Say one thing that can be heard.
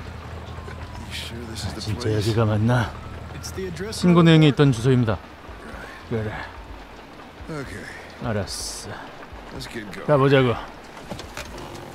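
An older man speaks in a gruff, weary voice.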